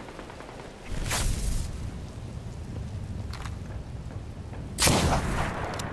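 A heavy gun fires loud booming blasts.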